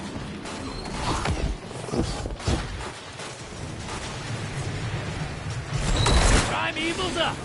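Gunshots crack with booming blasts.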